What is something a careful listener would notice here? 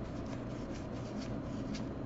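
Cards shuffle and slide against each other.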